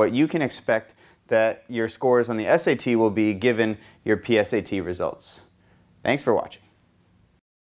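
A man speaks calmly and clearly into a clip-on microphone.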